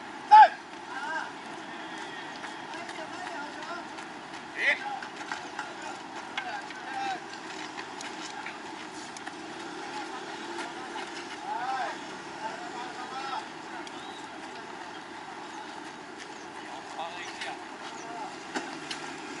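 Young men shout and call to each other across an open field outdoors.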